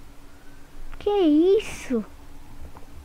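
A young boy speaks briefly close to a microphone.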